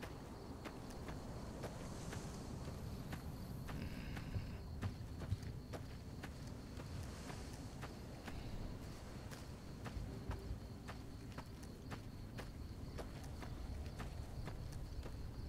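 Footsteps crunch steadily over loose gravel and rock.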